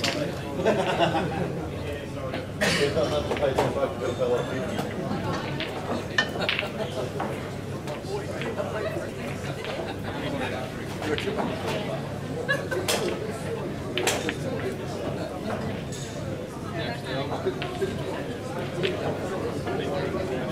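People murmur in the background of a large hall.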